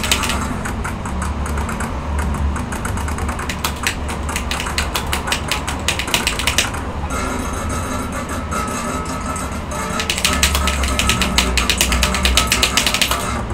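Fast electronic dance music plays with a driving beat.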